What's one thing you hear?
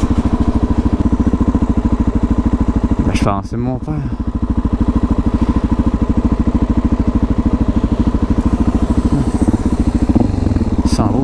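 A motorcycle engine idles close by with a steady, fast putter.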